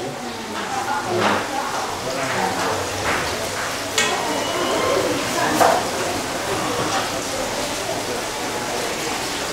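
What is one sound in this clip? A wooden spoon stirs and scrapes in a pot.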